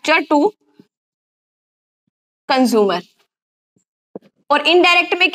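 A young woman speaks clearly and calmly, explaining in short bursts.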